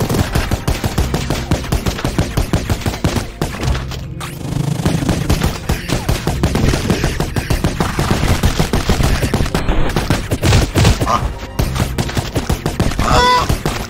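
Rapid gunfire blasts over and over.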